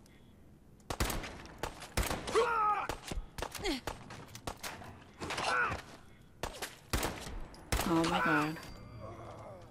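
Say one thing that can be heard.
Gunshots fire in loud, quick bursts.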